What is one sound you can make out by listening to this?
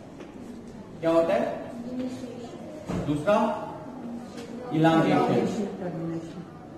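A man speaks in a lecturing tone, close by.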